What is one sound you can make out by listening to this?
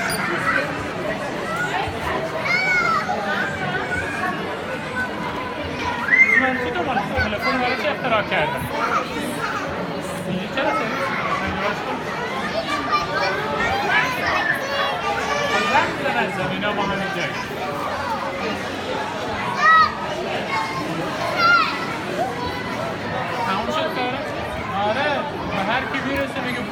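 Young children chatter and squeal close by.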